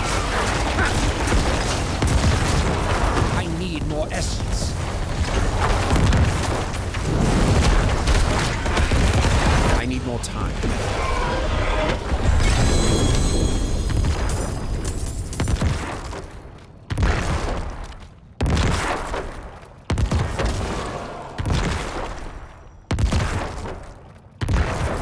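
Game combat effects crash and thud loudly.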